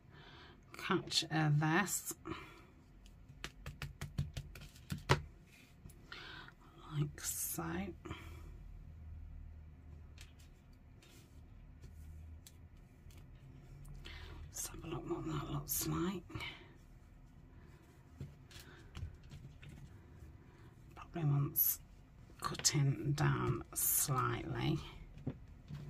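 Paper and cloth rustle and crinkle under hands.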